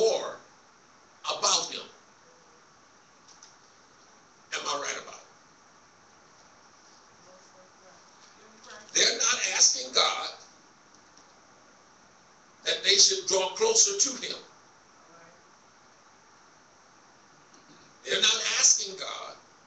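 A man preaches into a microphone in short, forceful bursts, heard through loudspeakers in an echoing hall.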